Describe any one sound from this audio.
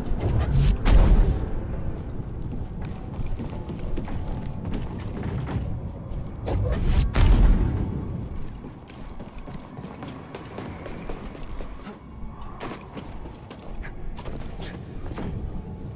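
Footsteps run on a stone floor.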